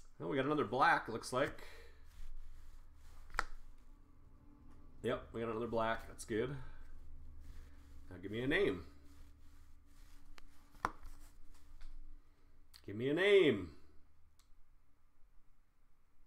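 Trading cards slide and flick against each other in a hand.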